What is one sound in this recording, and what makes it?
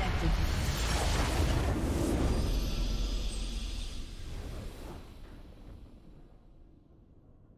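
A deep magical explosion booms and rumbles, then slowly fades away.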